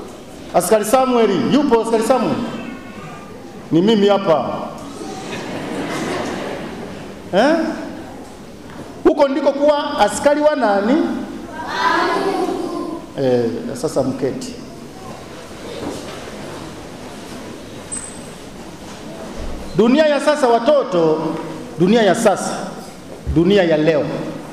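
A middle-aged man preaches with animation through a microphone and loudspeakers, his voice echoing in a large hall.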